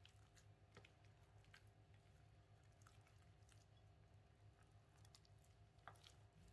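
A silicone spatula squelches and scrapes through soft dough in a glass bowl.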